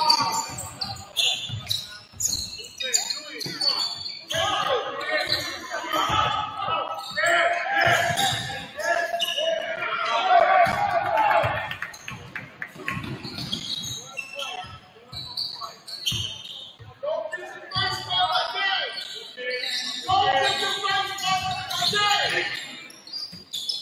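A basketball bounces on a hard wooden floor.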